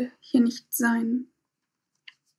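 A young woman speaks calmly and close over an online call.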